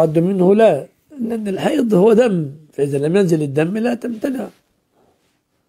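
An elderly man speaks calmly and with emphasis into a close microphone.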